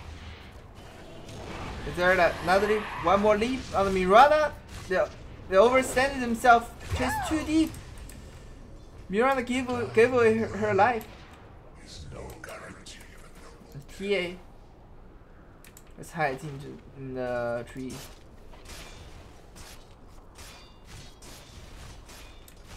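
Fighting sound effects from a video game clash and whoosh.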